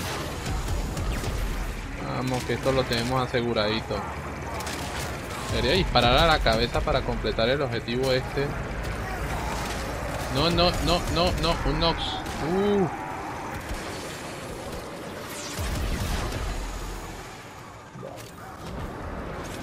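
Gunfire and energy blasts crackle in rapid bursts.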